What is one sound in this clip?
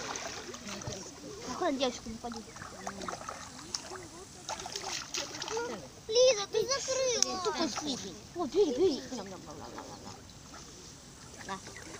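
Water splashes softly as ducks paddle.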